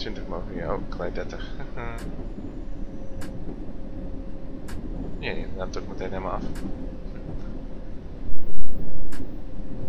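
A train rumbles steadily along rails through a tunnel.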